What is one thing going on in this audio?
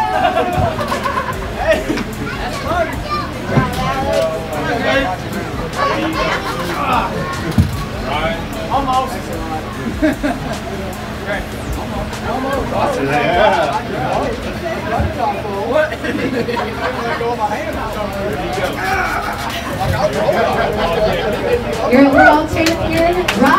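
A crowd of men and women chatter and cheer loudly.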